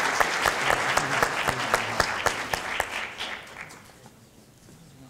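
An audience applauds in a large echoing hall, the clapping fading away.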